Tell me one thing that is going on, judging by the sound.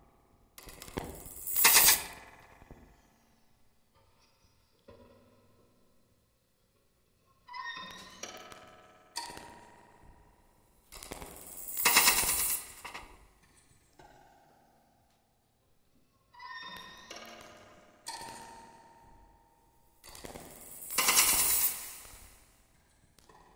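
A cymbal crashes loudly and rings out.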